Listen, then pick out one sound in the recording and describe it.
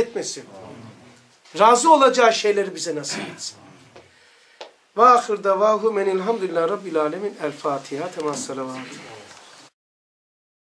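A middle-aged man talks calmly and close by.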